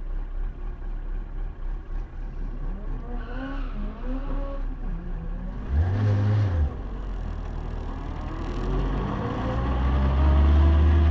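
A car engine idles and then revs up as the car pulls away.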